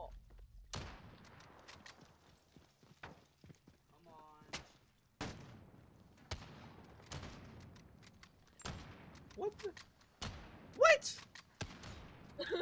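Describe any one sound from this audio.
Gunshots crack sharply, one at a time, with an echo.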